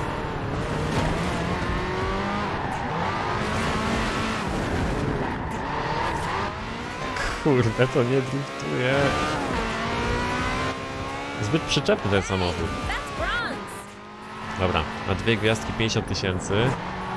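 A racing car engine roars and revs through the gears.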